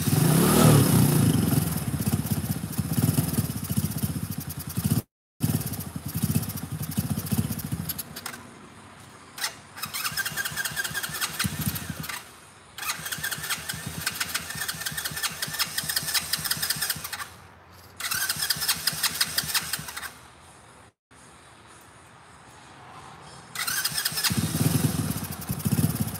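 A quad bike engine runs with a rapid chugging and rises in bursts of revving.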